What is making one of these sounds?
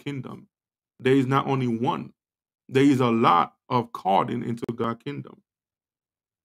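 A man speaks calmly and close to a microphone, then falls silent.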